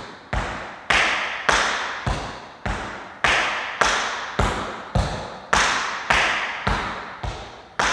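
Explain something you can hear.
Shoes step and tap on a wooden floor in an even rhythm.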